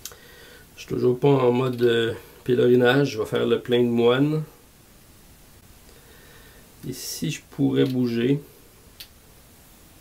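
Small wooden pieces tap and clink on a board.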